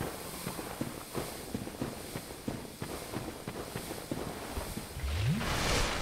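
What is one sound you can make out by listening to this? Armoured footsteps thud steadily on soft ground.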